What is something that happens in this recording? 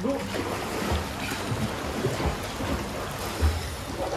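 A man wades through water with sloshing steps.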